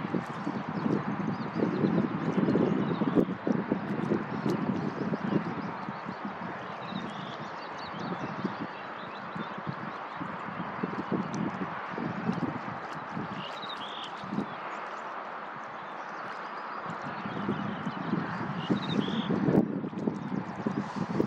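Wind buffets and rumbles outdoors, in gusts.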